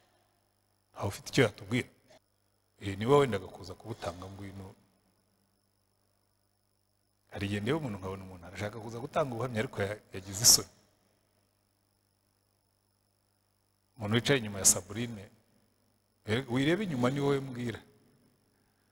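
A man speaks calmly into a microphone in short phrases, with long pauses.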